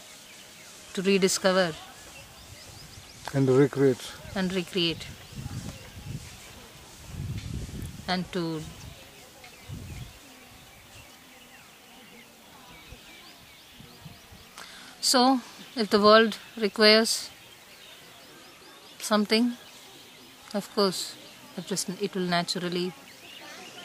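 A woman speaks calmly close by, in short phrases with pauses.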